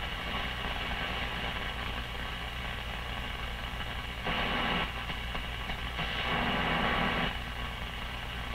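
An old radio hisses with static as its dial is tuned.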